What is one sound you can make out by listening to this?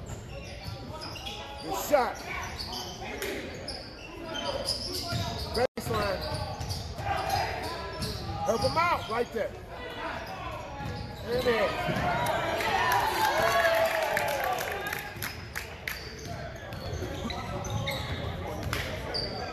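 Spectators chatter and call out in the background.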